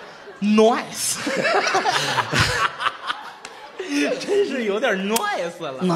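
Two men laugh and clap their hands.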